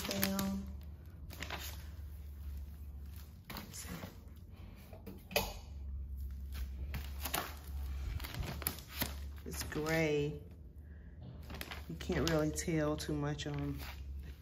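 Plastic sheeting crinkles as a hand lifts it.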